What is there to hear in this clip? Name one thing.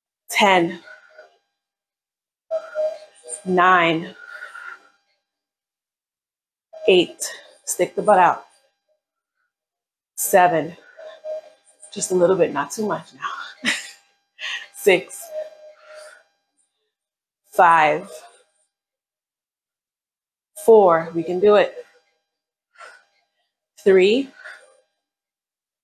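A woman speaks with animation in short bursts, close by.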